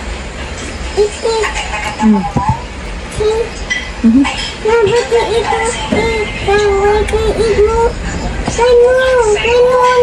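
A small girl chatters in a high voice close by.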